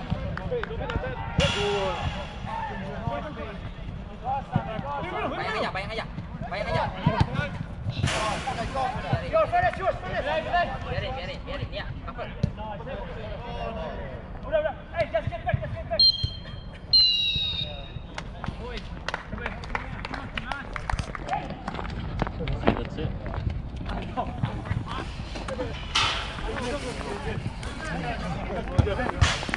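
Young men shout and call to each other from a distance outdoors.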